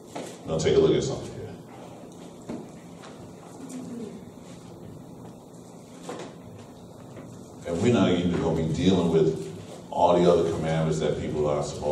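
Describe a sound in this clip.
A man speaks calmly through a microphone in a room with some echo, with long pauses.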